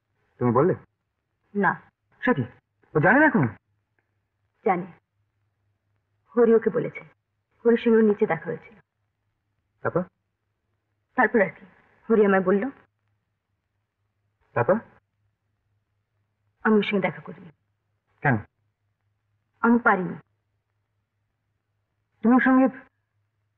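A young man speaks calmly and firmly nearby, in short phrases with pauses.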